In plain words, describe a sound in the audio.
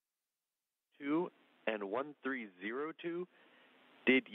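A man speaks calmly over a radio link.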